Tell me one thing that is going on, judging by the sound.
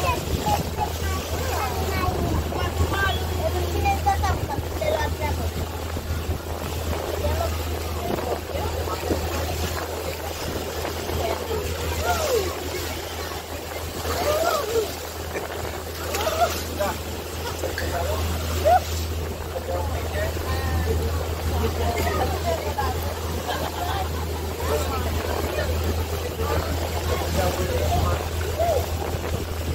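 A boat's motor drones steadily.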